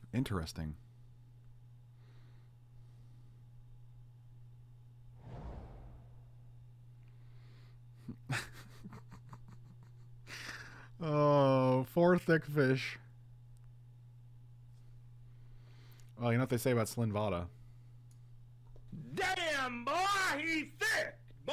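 A man talks with animation close to a microphone, in bursts with pauses.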